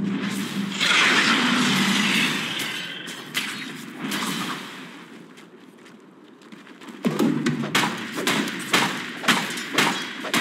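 Weapons clash and magic blasts burst in a busy fight.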